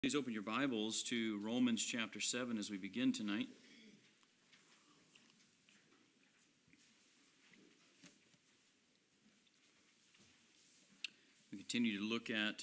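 A middle-aged man speaks steadily into a microphone, with pauses.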